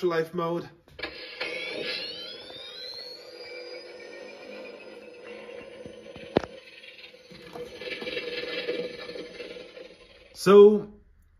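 A device powers up with a rising electronic whine, then hums steadily.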